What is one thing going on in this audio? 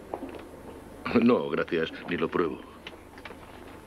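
An elderly man speaks slowly and gravely.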